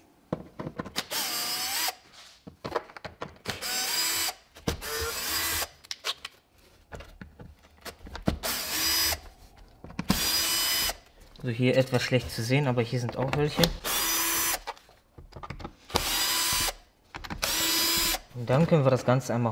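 A cordless drill whirs in short bursts, undoing screws.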